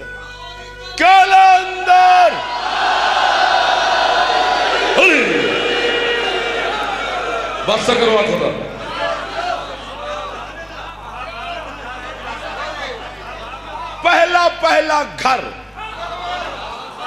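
A young man sings out long, drawn-out phrases through a microphone.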